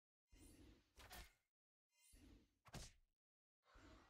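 Cards in a digital card game strike each other with soft thuds.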